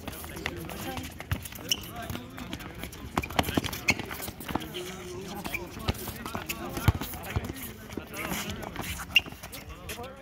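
Shoes squeak sharply on the court.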